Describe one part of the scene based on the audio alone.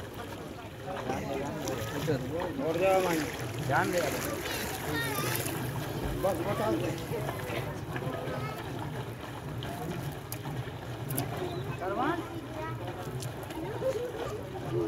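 Water splashes as men wade and push a floating raft.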